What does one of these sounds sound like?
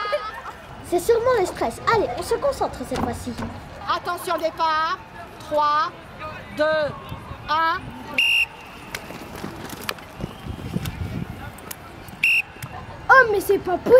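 A young girl speaks with animation into a microphone, close by.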